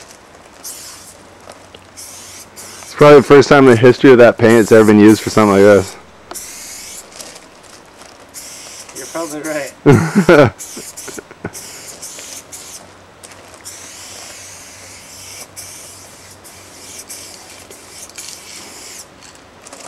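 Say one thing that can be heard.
A spray can hisses in short bursts.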